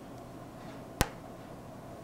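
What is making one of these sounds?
A card taps once against a metal tray.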